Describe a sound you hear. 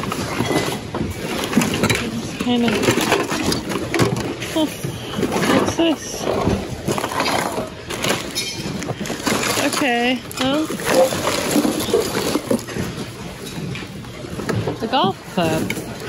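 Plastic items rustle and clatter as a hand sorts through them.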